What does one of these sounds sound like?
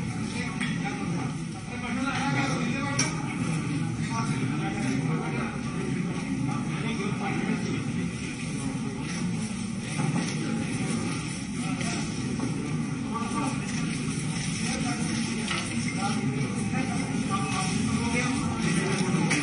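A crowd of men and women chatter at once nearby.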